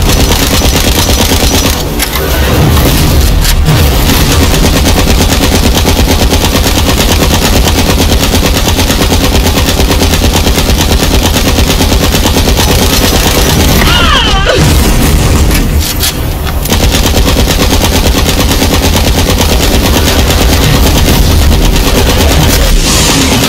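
Rapid gunfire rattles continuously.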